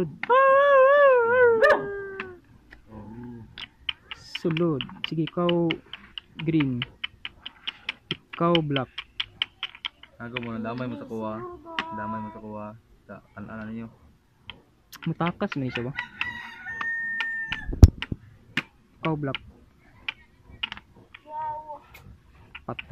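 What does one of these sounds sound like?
Plastic game pieces click and clack on a wooden board.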